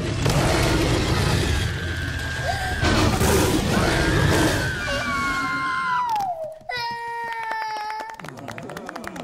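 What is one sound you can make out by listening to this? A child screams in fright.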